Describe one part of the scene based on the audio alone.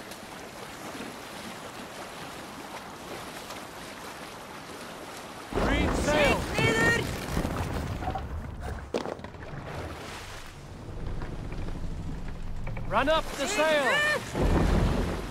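Waves lap and splash against a wooden boat.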